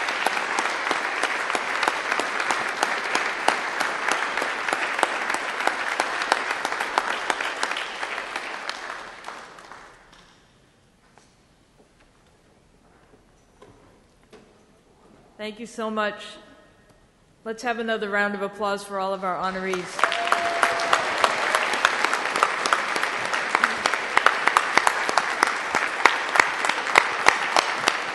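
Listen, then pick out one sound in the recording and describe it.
An audience applauds loudly in a large room.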